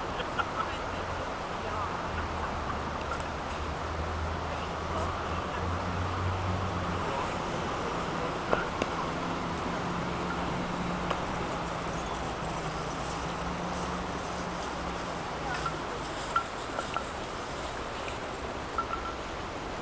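Wooden sticks clack together in short sharp knocks.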